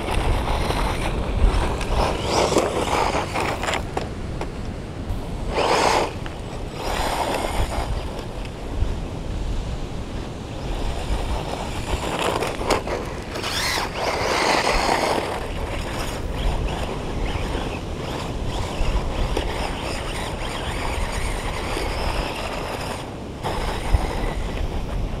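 Tyres crunch and skid on loose dirt.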